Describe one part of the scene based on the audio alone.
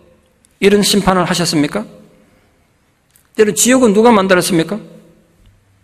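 A middle-aged man speaks calmly and slowly into a microphone, in a large echoing hall.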